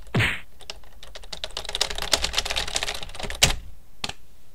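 Rapid electronic clicks buzz from a video game.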